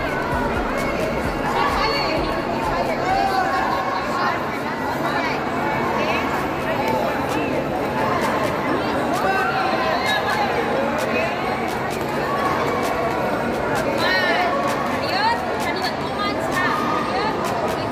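A crowd of adults and children chatters loudly in a large echoing hall.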